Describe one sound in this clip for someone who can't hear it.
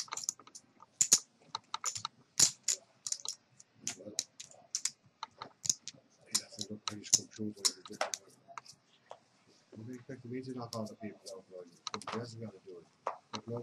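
Playing cards snap and slide as they are dealt.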